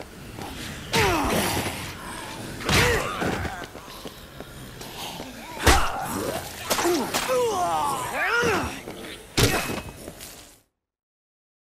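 Zombies groan and snarl.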